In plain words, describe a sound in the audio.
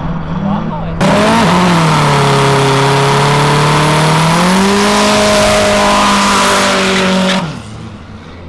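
A car engine revs loudly close by.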